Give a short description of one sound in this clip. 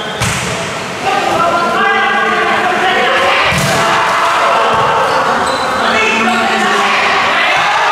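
A volleyball is struck hard.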